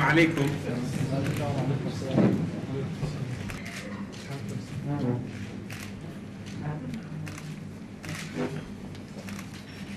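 Men murmur and talk quietly nearby.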